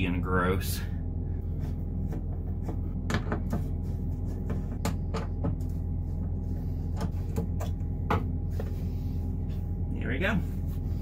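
Fabric rustles and clicks as a man handles a cloth bag.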